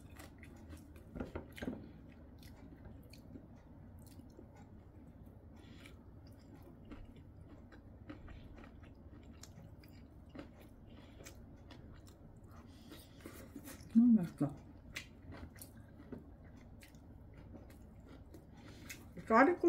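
Chopsticks click against a bowl.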